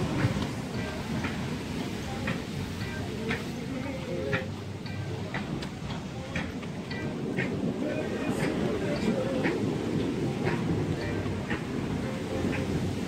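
Waves wash on a rocky shore.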